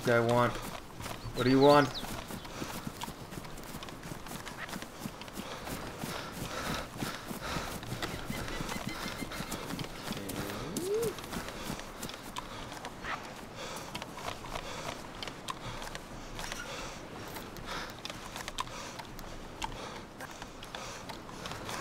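Footsteps run through long grass and then onto a hard floor.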